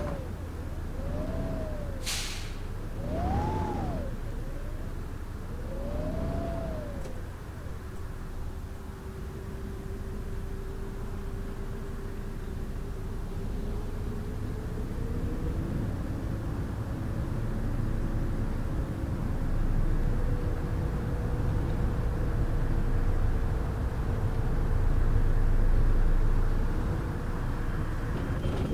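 A bus engine rumbles and whines steadily as the bus pulls away.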